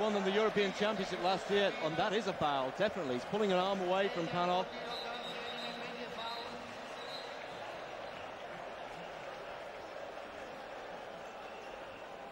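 A large crowd roars and murmurs in a big echoing arena.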